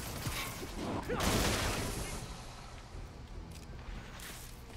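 A canister bursts.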